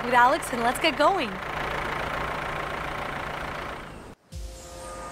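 A truck engine idles.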